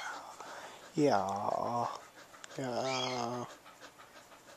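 A dog yelps and whines close by.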